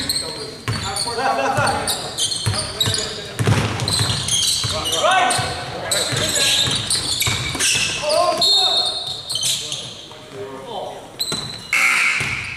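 Young men shout on the court.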